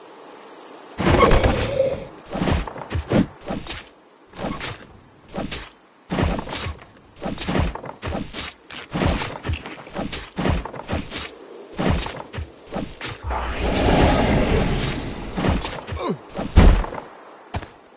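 Weapon blows land repeatedly in quick, sharp bursts during a fight.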